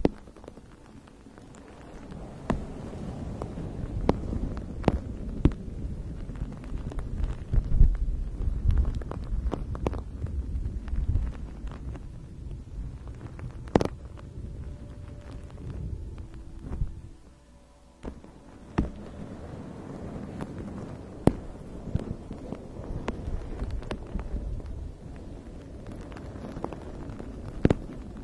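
Fingernails rub softly over a fluffy fabric close to a microphone.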